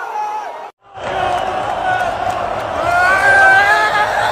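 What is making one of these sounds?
Young men sing together loudly close by.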